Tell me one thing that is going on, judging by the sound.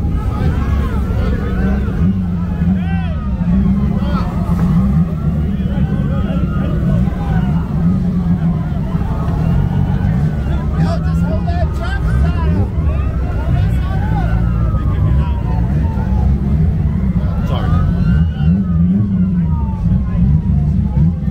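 A car engine rumbles and throbs nearby.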